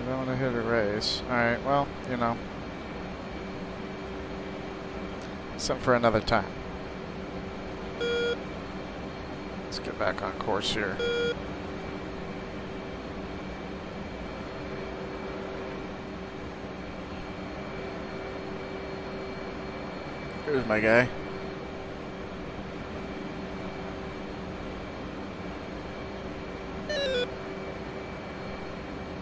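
A jet engine drones steadily.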